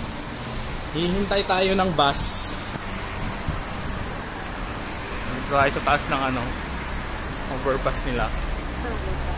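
A young man talks casually, close to the microphone, outdoors in wind.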